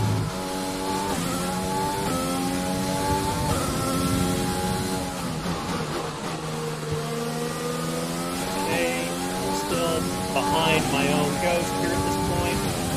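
A racing car engine whines loudly, rising in pitch and dropping with each gear change.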